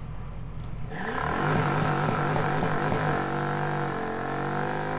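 An SUV engine revs hard as the vehicle speeds away.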